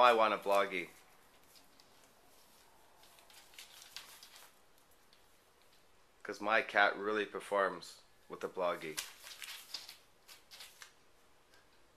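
A cat rustles and tears at a sheet of newspaper.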